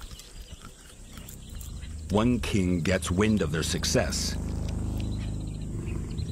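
A lioness chews and tears at raw meat.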